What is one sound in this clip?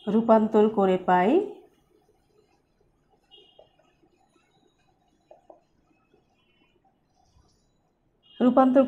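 A woman speaks clearly and with animation.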